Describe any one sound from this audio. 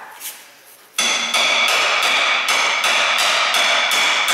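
A hammer rapidly taps on metal.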